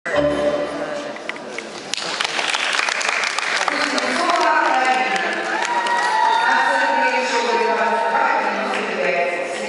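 Children chatter and call out in a large echoing hall.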